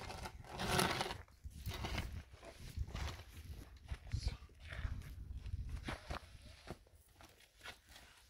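A trowel scrapes wet mortar on a block wall.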